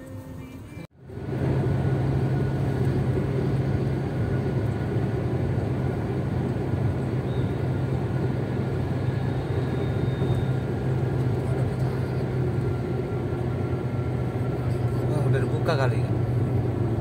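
A car engine hums steadily, with road noise heard from inside the car.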